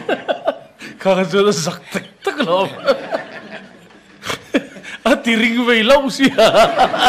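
An audience laughs and claps.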